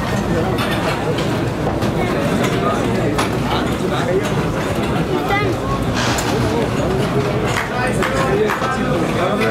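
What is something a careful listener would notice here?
Many men talk loudly at once close by.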